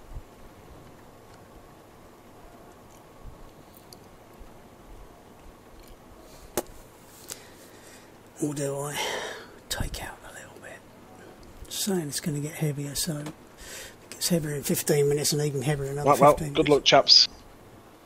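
Rain patters softly on a car windshield.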